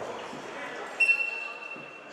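A wrestler thuds onto a mat.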